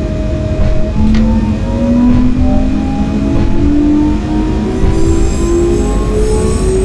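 An electric train motor whines, rising in pitch as the train speeds up.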